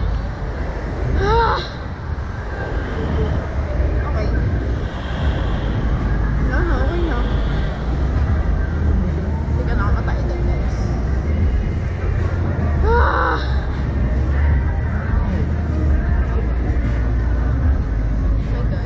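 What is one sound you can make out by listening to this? Wind rushes loudly past throughout.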